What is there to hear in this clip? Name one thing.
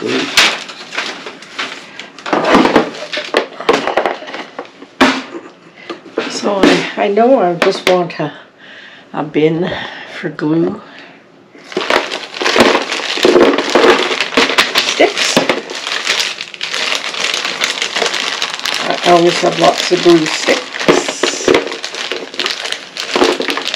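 Plastic parts clatter in a plastic box.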